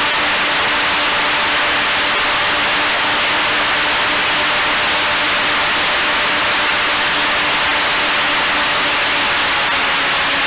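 Wind rushes loudly and steadily past a small aircraft in flight.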